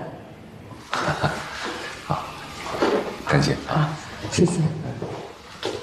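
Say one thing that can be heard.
A middle-aged man speaks warmly and laughs nearby.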